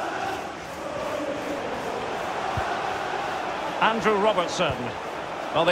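A stadium crowd murmurs and chants steadily.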